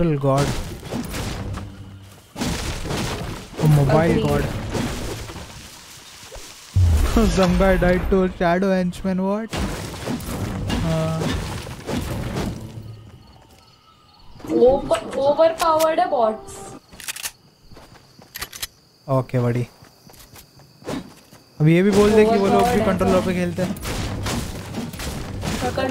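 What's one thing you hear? A pickaxe chops into wood with sharp knocks.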